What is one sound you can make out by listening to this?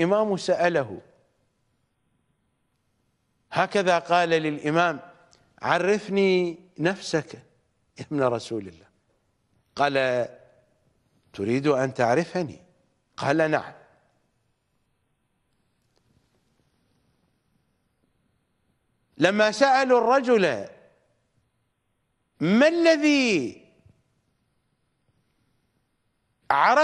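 A middle-aged man speaks with animation into a close microphone, in short bursts with long pauses.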